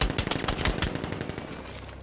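Gunfire rattles and bullets spark off metal.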